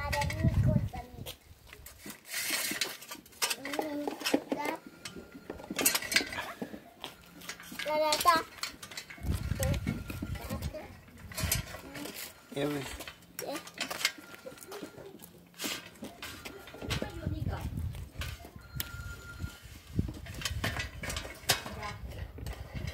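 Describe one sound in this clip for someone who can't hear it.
A bicycle chain rattles and clicks against metal parts.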